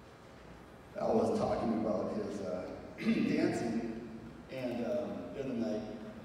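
A middle-aged man speaks calmly into a microphone, heard through a loudspeaker in an echoing room.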